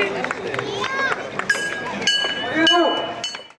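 Small hand cymbals clink.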